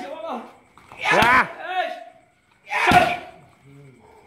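Punches and kicks smack loudly against padded mitts.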